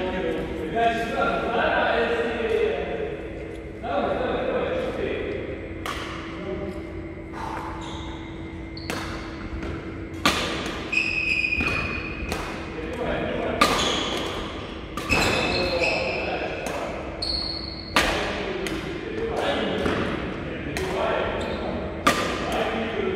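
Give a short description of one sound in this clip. Rackets strike a shuttlecock with sharp pops in an echoing hall.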